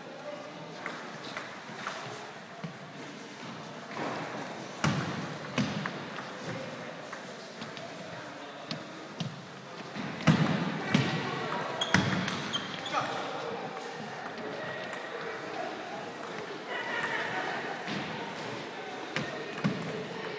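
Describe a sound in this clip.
Sneakers squeak and shuffle on a wooden floor.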